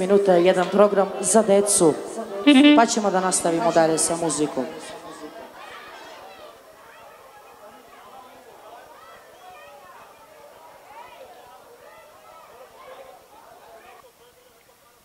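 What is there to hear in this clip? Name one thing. A crowd of adults and children chatters in the background.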